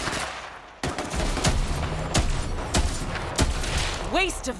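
Gunshots fire one after another at a steady pace.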